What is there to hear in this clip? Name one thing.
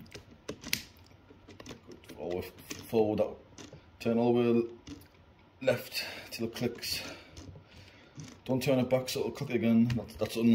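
A drill chuck clicks and ratchets as it is twisted by hand.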